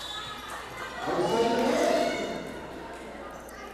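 Young women shout and cheer in an echoing hall.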